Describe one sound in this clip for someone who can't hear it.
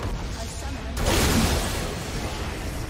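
A game structure explodes with a loud, crashing boom.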